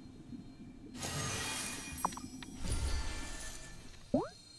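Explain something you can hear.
A magical whoosh and shimmer rises from a cauldron.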